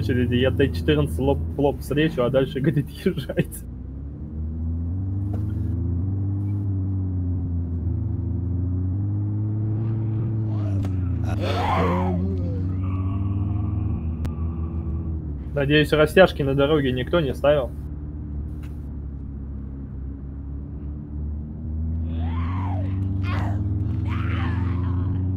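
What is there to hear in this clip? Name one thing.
A car engine hums steadily, rising and falling in pitch as it speeds up and slows down.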